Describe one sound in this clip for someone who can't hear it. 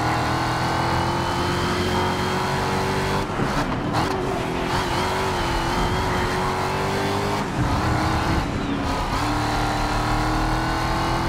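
A racing car engine roars at high speed, its pitch dropping and rising through the corners.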